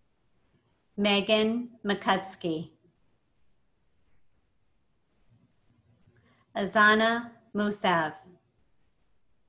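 A woman reads out names calmly over an online call.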